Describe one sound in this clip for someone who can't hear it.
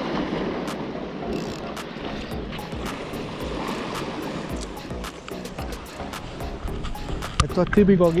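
A fishing reel clicks as its handle turns.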